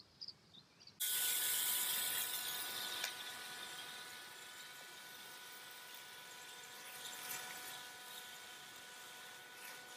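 Water sprays steadily from a garden hose, hissing outdoors.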